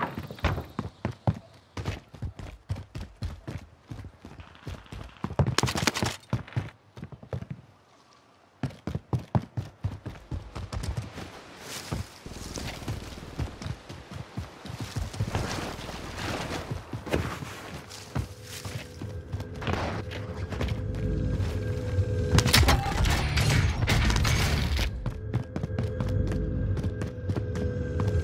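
Footsteps run quickly over hard ground and wooden boards.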